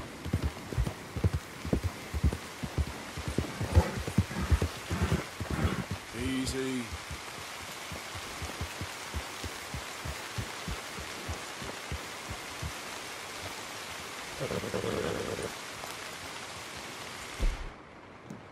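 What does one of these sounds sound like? Horse hooves thud steadily on a soft dirt trail.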